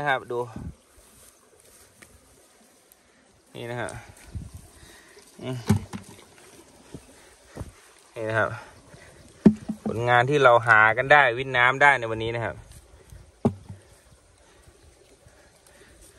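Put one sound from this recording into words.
Dry grass rustles softly as a hand moves fish about.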